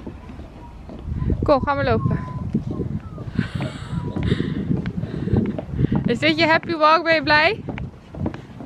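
Stroller wheels rumble over wooden boards.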